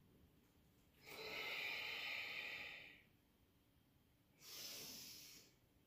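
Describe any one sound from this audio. A woman breathes out long and loud, close by.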